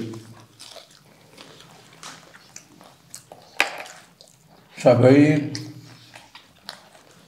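A young man chews and smacks his lips loudly close to a microphone.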